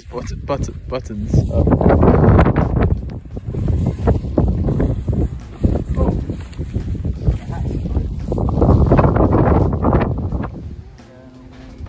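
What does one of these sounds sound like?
Wind gusts loudly outdoors.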